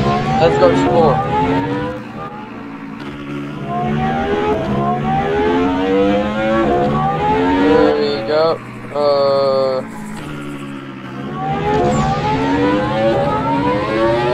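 A car engine revs up and down repeatedly as the car races along.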